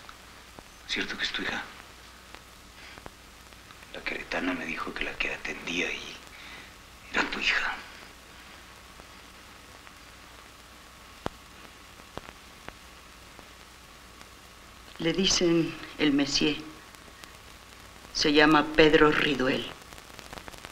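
A middle-aged woman speaks quietly up close.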